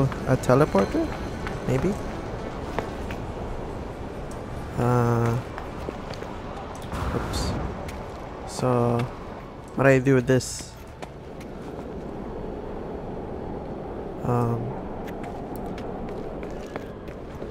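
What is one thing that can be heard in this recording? Footsteps crunch on dry ground at a run.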